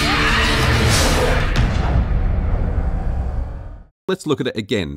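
A huge creature lets out a loud, rumbling roar that slowly fades.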